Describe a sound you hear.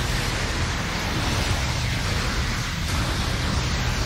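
A beam rifle fires with sharp zaps.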